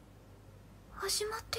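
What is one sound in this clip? A young woman's voice asks a surprised question up close.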